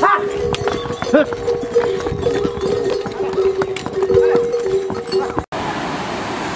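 Mules' hooves clop on stone steps.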